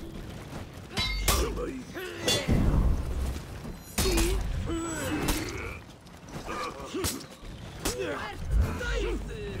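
Swords clash and strike sharply.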